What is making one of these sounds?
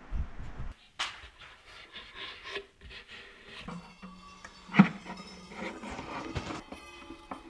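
Wooden pieces knock and clatter against a wooden box.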